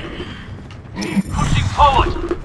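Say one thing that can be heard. Gunfire crackles in a short burst.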